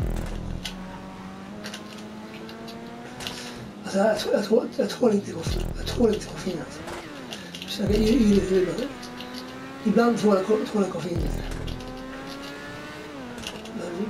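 A racing car engine whines at high revs, rising and dropping in pitch as the car shifts gears.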